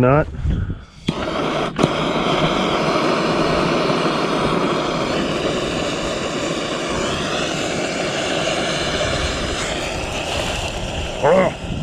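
A lighter hisses steadily.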